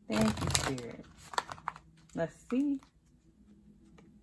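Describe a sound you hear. Playing cards shuffle and slap softly together.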